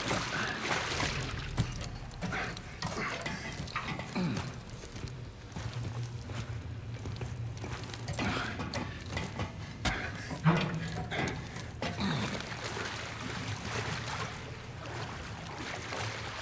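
Footsteps clang on metal floors and rungs.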